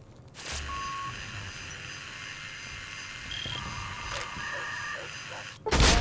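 Short electronic beeps sound.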